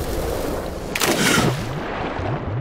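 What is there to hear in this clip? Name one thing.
A body plunges into water with a loud splash.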